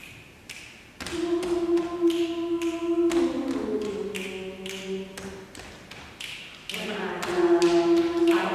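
A small group of young women sings together in a large echoing hall.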